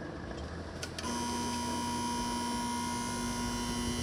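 A railway crossing bell rings loudly and steadily.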